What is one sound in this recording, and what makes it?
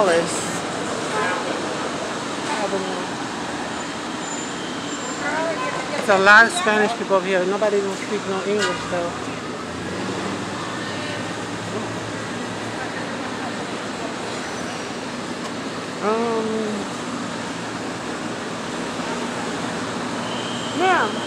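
A woman talks close by, on and off.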